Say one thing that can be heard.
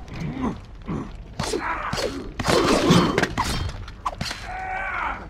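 Metal blades clash and clang in a fight.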